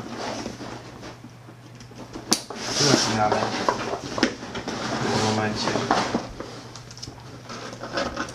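A bag's plastic buckle clicks.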